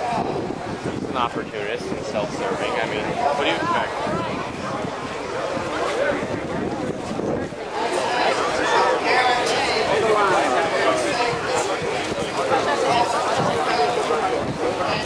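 A large crowd of men and women chatters outdoors, with voices overlapping all around.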